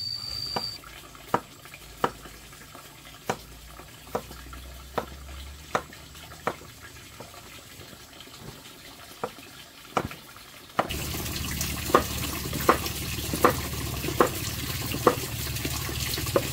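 A cleaver chops through vegetables onto a wooden board with sharp knocks.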